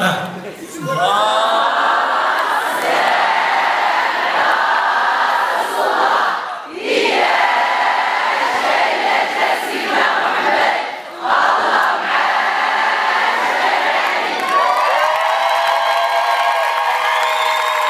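A woman sings through a loudspeaker in an echoing hall.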